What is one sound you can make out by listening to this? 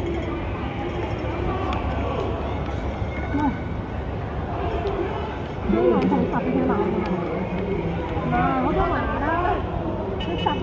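A crowd of men and women shouts and talks nearby, outdoors.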